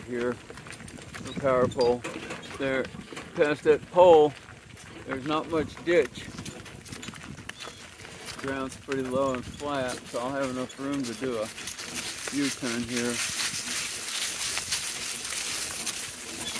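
Donkey hooves clop on a gravel road.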